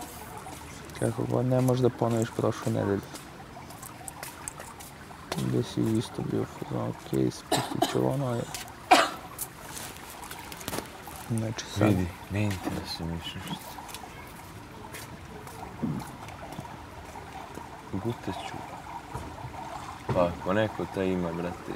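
Two young men talk calmly nearby.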